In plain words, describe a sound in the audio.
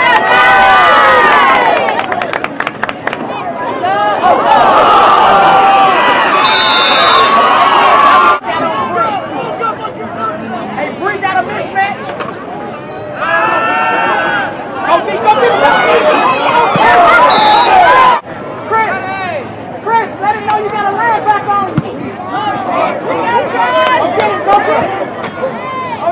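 A crowd cheers and yells outdoors.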